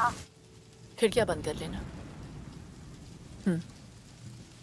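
A woman speaks calmly into a phone.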